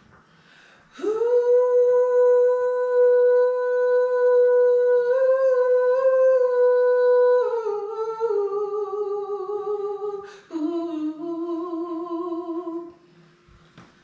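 A woman sings long, steady held notes into a microphone.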